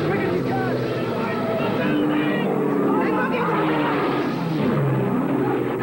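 A man shouts up urgently, close by.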